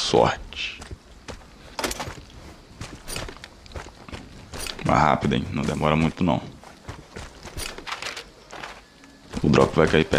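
Footsteps tread steadily on grass and soft ground.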